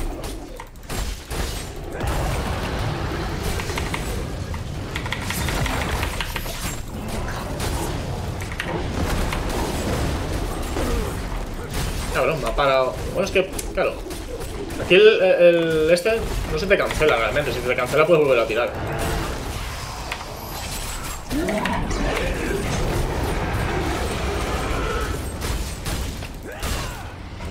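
Fiery game combat effects boom and crackle.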